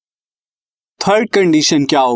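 A man speaks calmly into a microphone, explaining as if teaching.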